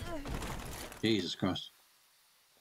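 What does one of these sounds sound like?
A knight falls to the ground with a heavy thud.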